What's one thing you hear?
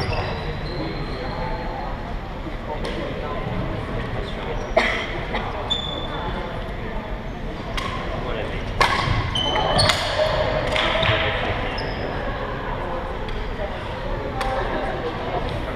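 A crowd of young people chatters in the background.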